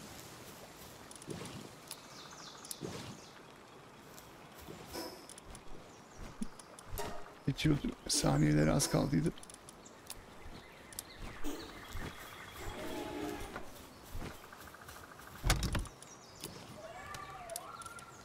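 Short menu clicks and chimes sound now and then.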